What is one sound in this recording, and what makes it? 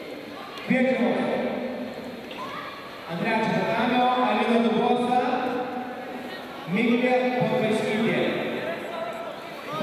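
Men shout instructions loudly in a large echoing hall.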